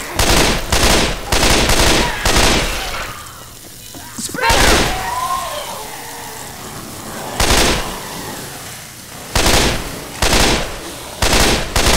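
Flames crackle and roar.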